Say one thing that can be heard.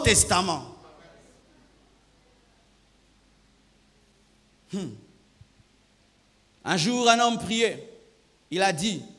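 A man preaches with emphasis into a microphone, his voice echoing in a large hall.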